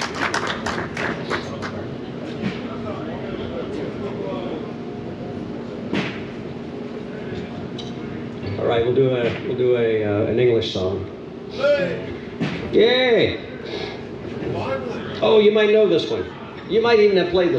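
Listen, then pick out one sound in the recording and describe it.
A man strums an acoustic guitar through a loudspeaker outdoors.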